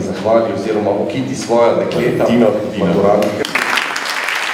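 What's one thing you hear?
A man speaks into a microphone in a large hall.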